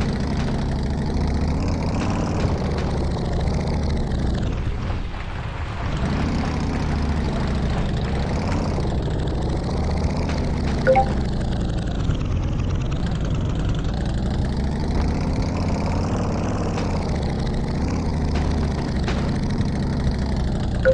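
A motorcycle engine hums steadily, rising and falling as it climbs over rough ground.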